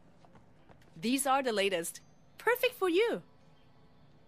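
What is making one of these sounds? A young woman speaks in a friendly, calm voice.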